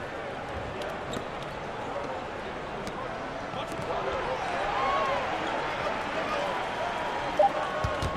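A crowd murmurs and cheers steadily in a large arena.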